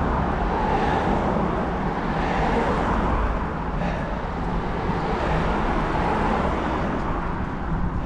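A car drives past and fades away.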